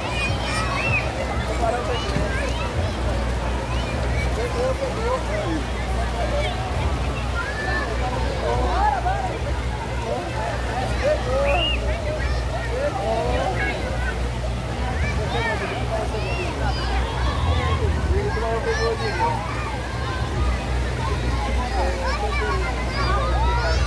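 A crowd of children and adults chatter and shout playfully all around.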